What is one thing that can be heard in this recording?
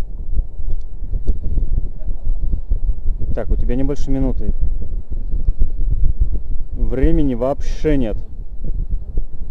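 Wind rumbles steadily against the microphone high outdoors.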